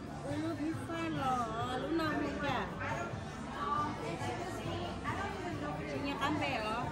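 Diners chatter in the background.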